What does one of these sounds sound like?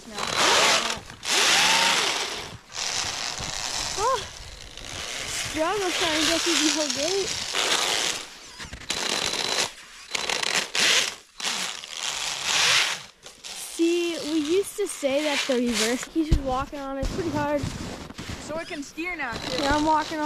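Wind rushes over the microphone outdoors.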